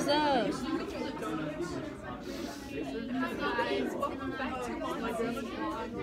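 Several students chatter in the background.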